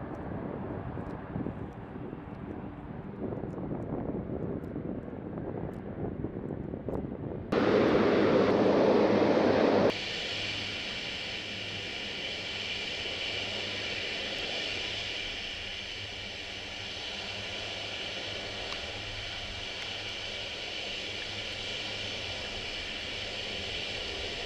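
Propeller engines of a large aircraft drone steadily in the distance.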